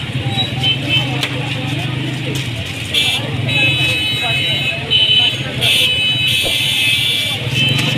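A man handles paper wrappers with a rustle.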